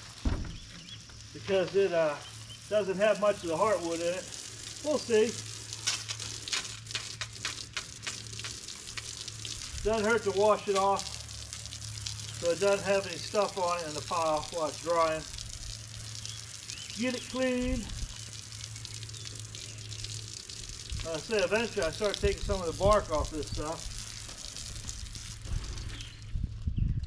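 Water sprays from a hose onto wood with a steady hiss.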